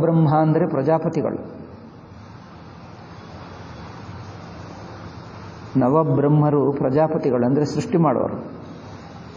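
An elderly man speaks calmly and slowly, close by, in short phrases with pauses.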